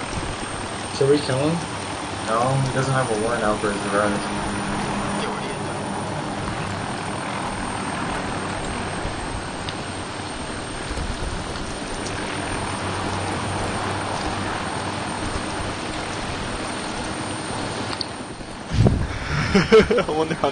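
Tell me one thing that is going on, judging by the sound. A man speaks calmly, heard through a speaker.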